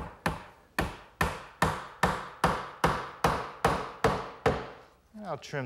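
A mallet strikes wood in quick, regular blows.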